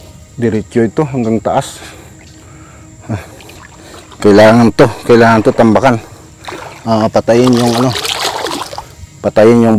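Wet mud squelches underfoot.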